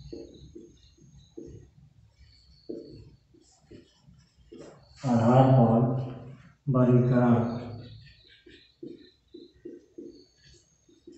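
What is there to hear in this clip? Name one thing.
A man speaks calmly nearby, explaining at times with loud emphasis.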